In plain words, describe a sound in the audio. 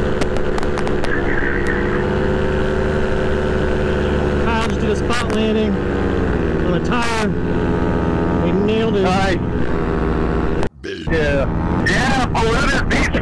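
A motor engine drones steadily in flight.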